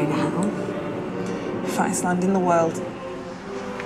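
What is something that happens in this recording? Another young woman speaks casually nearby.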